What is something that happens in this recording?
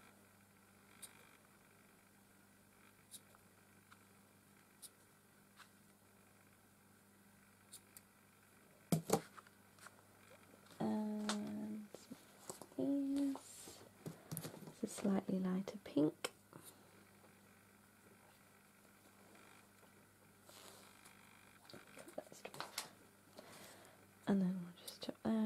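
Scissors snip through yarn with short, sharp clicks.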